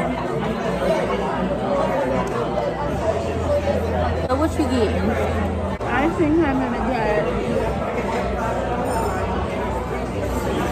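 A murmur of many people talking fills a busy room.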